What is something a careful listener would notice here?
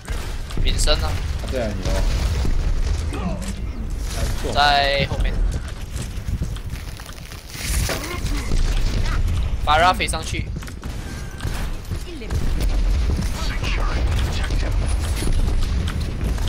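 Explosions boom sharply.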